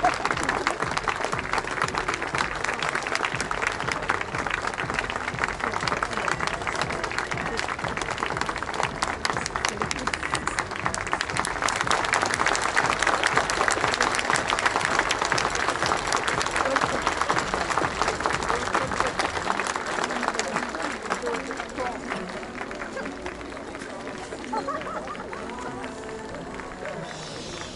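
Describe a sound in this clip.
A stadium crowd claps and cheers loudly outdoors, then quietens.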